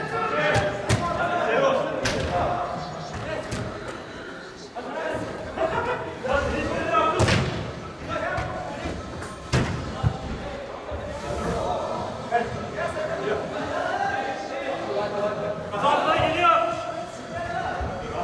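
Young men shout and call out to each other across a large echoing hall.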